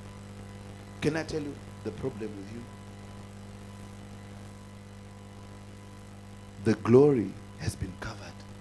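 A man speaks slowly into a microphone, in short phrases.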